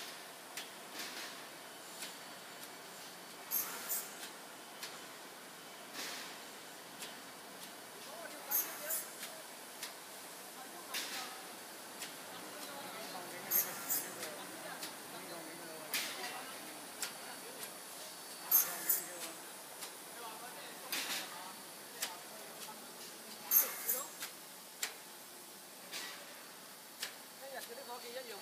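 An automatic pipe-cutting machine cuts copper tubing in regular bursts.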